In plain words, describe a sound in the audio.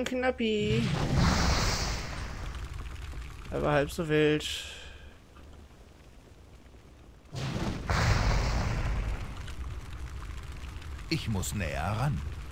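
Spell effects whoosh and crackle with fire.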